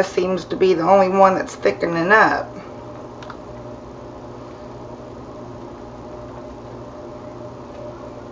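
Thick liquid pours softly from a jug.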